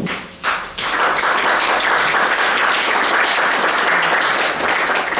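Charcoal scratches and rubs across a large canvas.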